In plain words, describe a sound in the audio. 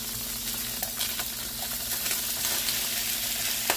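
Shrimp slide and tumble from a plastic colander into a pan.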